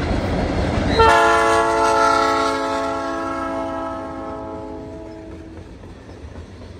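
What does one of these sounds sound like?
A train horn blares loudly, then fades.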